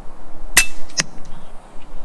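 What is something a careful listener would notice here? A pellet smacks into a target a moment later.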